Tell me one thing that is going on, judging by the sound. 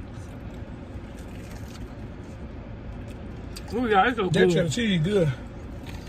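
A woman bites and chews crunchy food.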